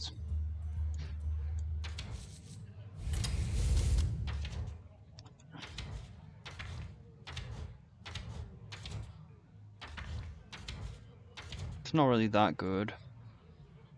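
Game pages flip over quickly with soft swishing sounds.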